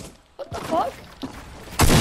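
A pickaxe swings and strikes wood.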